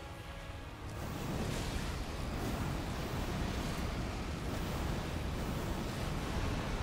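A deep, roaring blast rumbles steadily.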